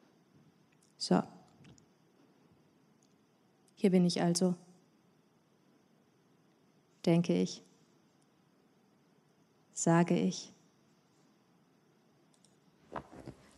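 A woman speaks into a microphone in short, halting phrases with long pauses.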